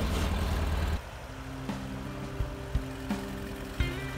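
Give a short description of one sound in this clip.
A tractor drives off with its engine chugging.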